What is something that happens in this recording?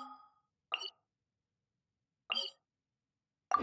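Soft interface clicks chime briefly.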